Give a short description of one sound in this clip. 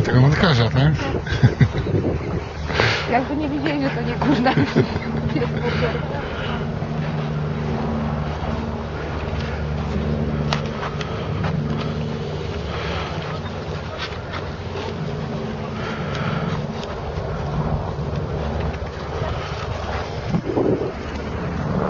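A woman talks to dogs outdoors.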